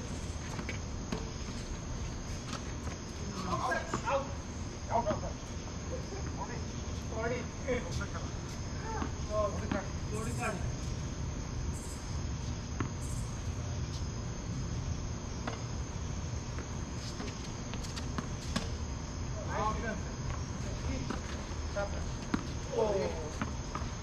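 Tennis balls are struck with rackets in a rally.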